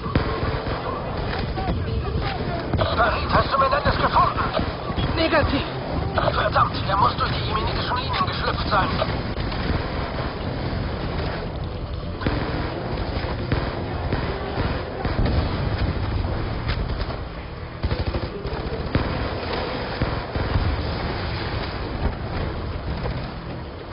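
Rifle gunfire rattles in bursts.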